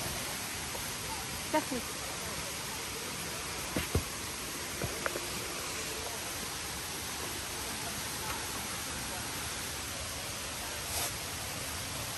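Footsteps crunch and rustle on dry leaves.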